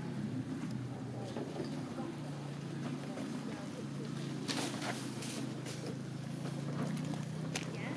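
Dry branches crackle as debris is pulled from a heap.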